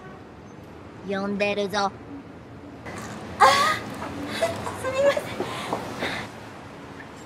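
A woman answers cheerfully, close by.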